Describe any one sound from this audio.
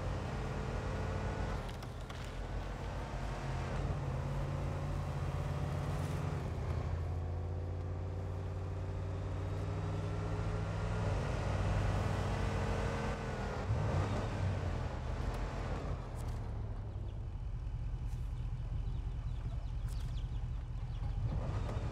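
A heavy truck engine rumbles and revs steadily.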